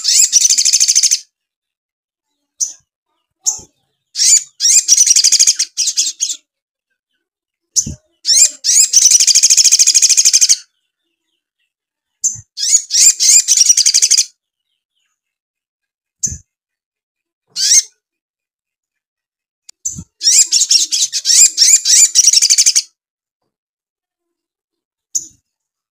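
A small bird flutters its wings against a cage.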